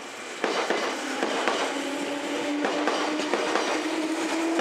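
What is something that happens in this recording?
A train's motor hums with a steady whine as it passes.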